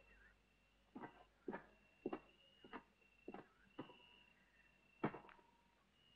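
Boots thud slowly on a hard floor.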